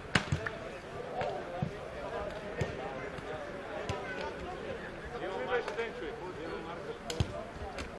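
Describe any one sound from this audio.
Several men talk and call out to each other outdoors.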